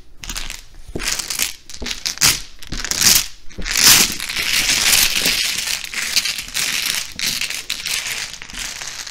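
Plastic tiles clatter and rattle as they are shuffled across a table.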